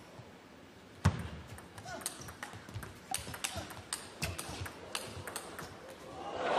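A table tennis ball clicks back and forth in a quick rally.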